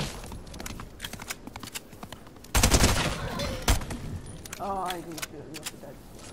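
Footsteps patter across grass.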